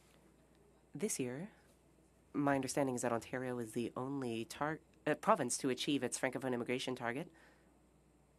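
An older woman speaks through a microphone.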